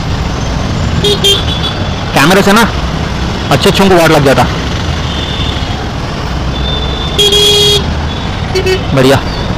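Vehicle horns honk repeatedly in nearby traffic.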